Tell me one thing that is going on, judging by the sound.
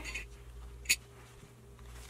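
A plastic clip clicks shut.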